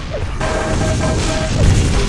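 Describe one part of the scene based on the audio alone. An electric weapon buzzes and crackles as it fires.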